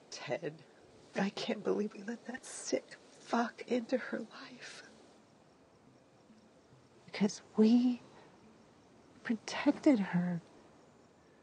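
A young woman speaks quietly and seriously, close by.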